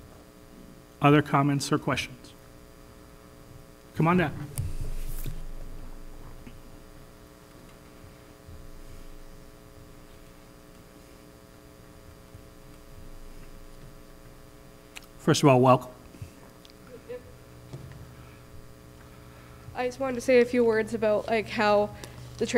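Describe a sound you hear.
A man speaks through a microphone, with long pauses.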